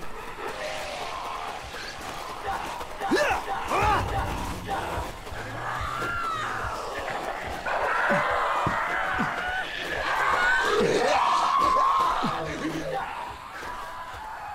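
Footsteps run over dirt and through brush.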